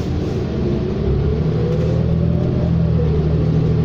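A bus engine whines, rising in pitch as it speeds up.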